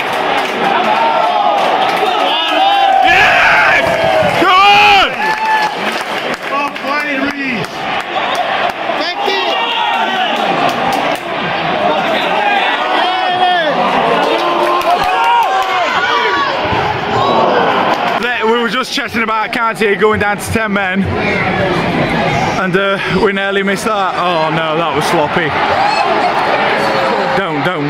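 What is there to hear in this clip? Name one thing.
A large stadium crowd chants and sings loudly throughout.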